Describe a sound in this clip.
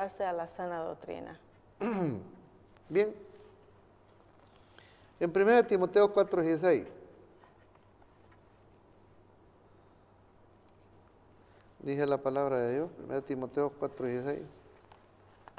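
An adult speaks calmly and with expression close to a microphone.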